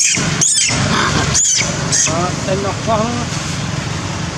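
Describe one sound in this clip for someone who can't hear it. A monkey squeals and chatters close by.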